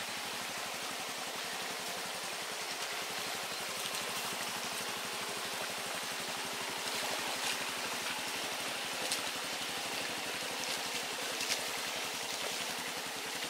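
Water splashes as a motorcycle rides through a shallow stream.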